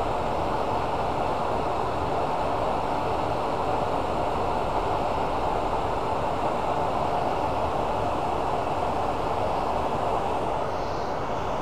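A lathe motor hums steadily as the spindle spins.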